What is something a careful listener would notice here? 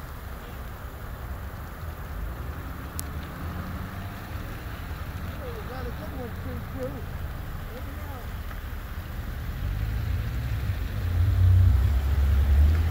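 A train rumbles in the distance and grows louder as it approaches.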